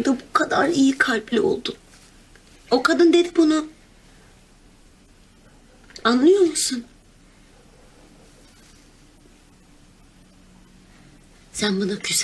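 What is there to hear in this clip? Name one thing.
A young woman speaks tearfully and softly, close by.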